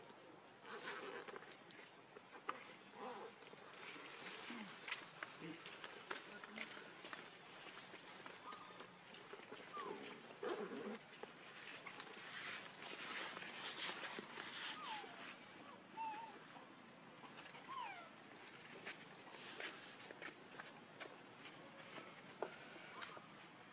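Dry leaves rustle under monkeys' feet.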